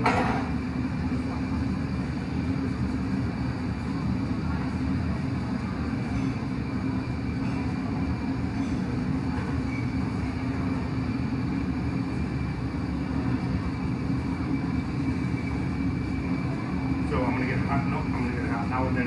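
A furnace roars steadily close by.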